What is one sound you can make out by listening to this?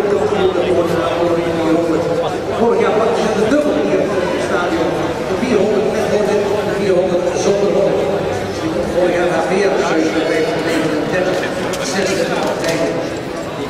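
Spectators chatter at a distance in an open-air stadium.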